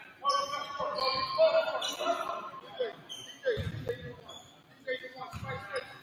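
Spectators murmur and call out nearby.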